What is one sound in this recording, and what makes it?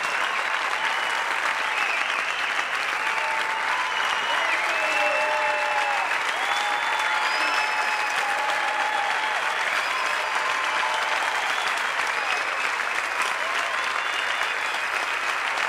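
Audience members whistle and cheer.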